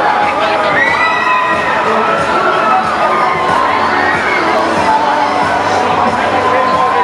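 A dense crowd chatters and calls out all around, outdoors.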